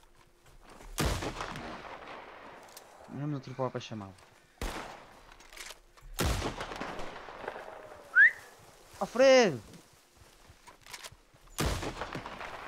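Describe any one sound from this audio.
A rifle fires with a sharp bang.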